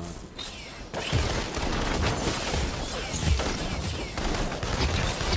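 Loud explosions and gunfire rumble and crackle.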